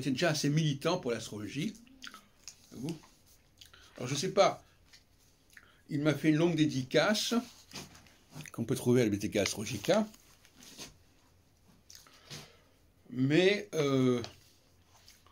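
An elderly man reads aloud expressively, close by, in bursts with pauses.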